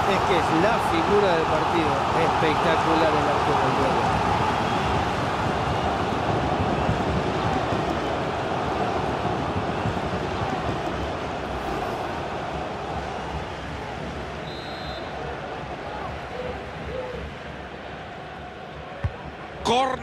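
A stadium crowd roars and cheers, slowly fading.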